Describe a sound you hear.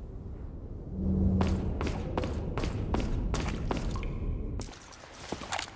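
Footsteps thud along a stone passage.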